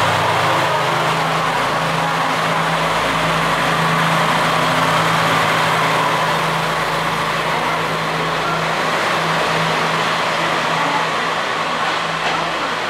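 A train's engine hums steadily, then fades.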